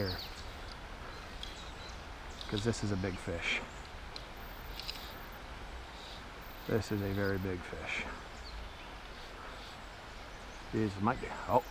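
A river flows gently nearby.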